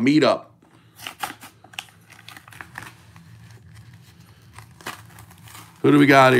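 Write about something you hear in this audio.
A foil pack is torn open.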